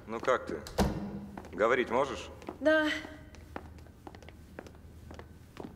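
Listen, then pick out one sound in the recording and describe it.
Footsteps tap on a staircase.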